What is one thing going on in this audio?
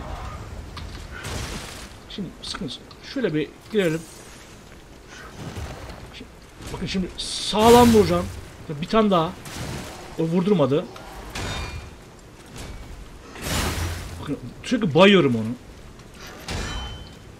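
A heavy blade strikes with sharp, metallic impacts.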